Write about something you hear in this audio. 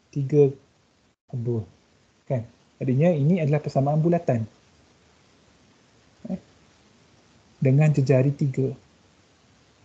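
A man explains calmly through a microphone, as if on an online call.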